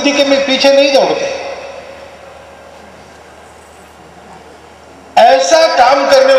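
An elderly man speaks firmly through a loudspeaker, with his voice echoing outdoors.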